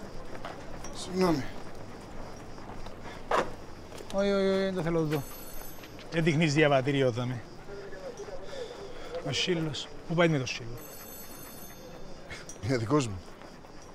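A man answers calmly from close by.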